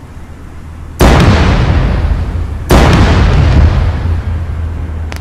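A tank cannon fires with loud booming blasts that echo away.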